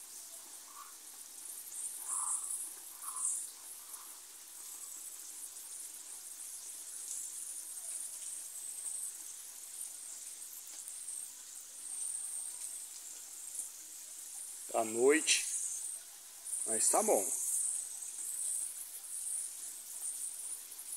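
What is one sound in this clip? A jet of water hisses and splashes steadily onto leaves.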